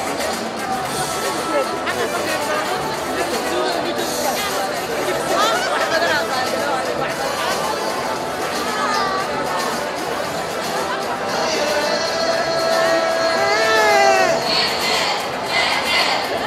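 Women ululate and shout with excitement.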